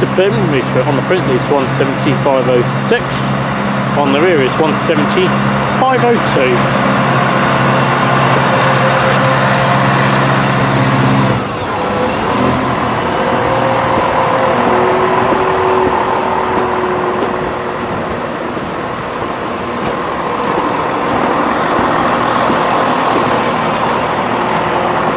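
A train rumbles and clatters along the rails as it pulls away.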